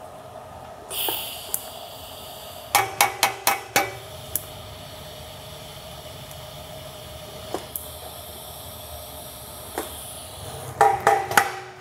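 A welding torch buzzes and hisses steadily.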